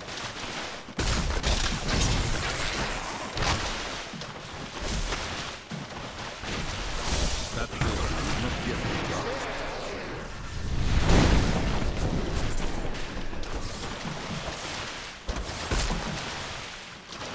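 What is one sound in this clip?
Magic spells blast and crackle in rapid bursts.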